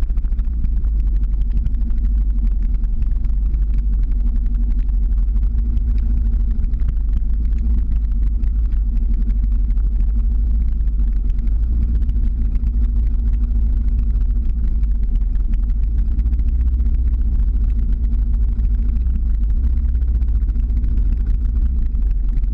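Small wheels rumble steadily on asphalt.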